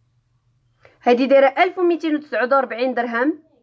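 A young woman speaks close to the microphone with animation.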